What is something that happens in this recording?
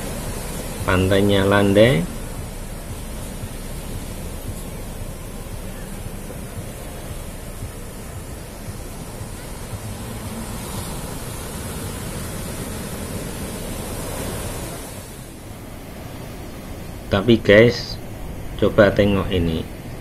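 Waves wash and break on a shore in a steady rushing roar.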